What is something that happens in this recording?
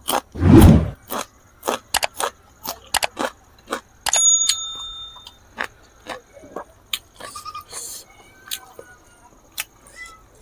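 A man chews food with wet smacking sounds close to a microphone.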